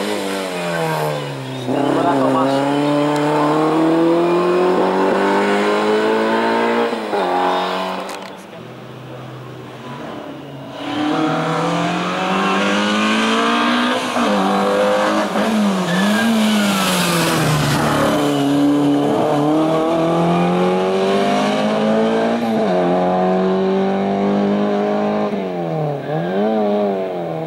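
A rally car engine revs hard nearby, climbing in pitch and dropping sharply with each gear change.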